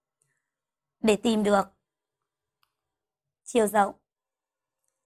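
A woman speaks clearly and calmly into a close microphone, in short phrases.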